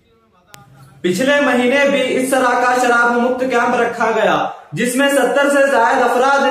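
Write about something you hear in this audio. A man addresses a small gathering through a loudspeaker.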